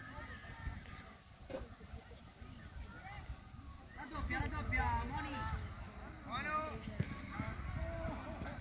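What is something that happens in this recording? Young women shout and call out excitedly across an open field.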